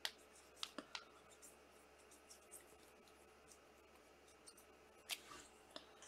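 A marker squeaks as it writes on a card.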